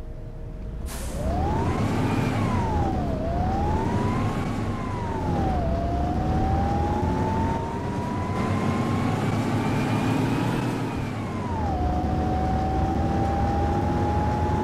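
A bus engine revs and whines as the bus speeds up, rising and dropping with each gear change.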